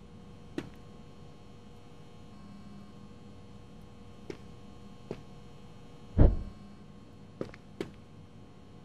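Footsteps tap now and then on a hard floor.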